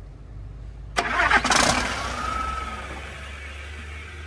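A large diesel engine cranks and starts up with a loud rumble.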